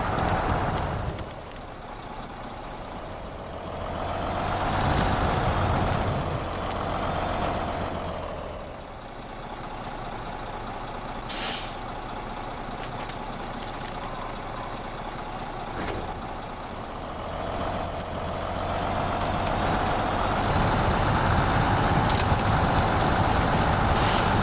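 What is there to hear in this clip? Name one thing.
A heavy truck engine rumbles and revs, rising and falling.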